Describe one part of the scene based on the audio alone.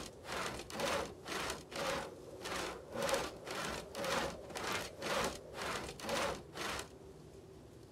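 A shovel digs into soil in quick, repeated strokes.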